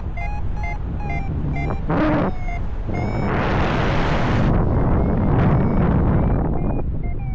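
Wind rushes loudly past in flight.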